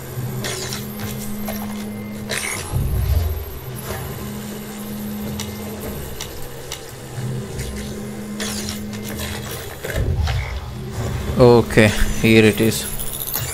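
A sci-fi energy tool hums and crackles as it fires a beam.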